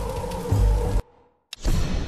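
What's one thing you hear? A torch flame crackles and roars.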